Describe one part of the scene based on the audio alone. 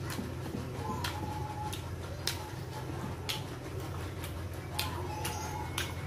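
A man chews food with wet smacking sounds close by.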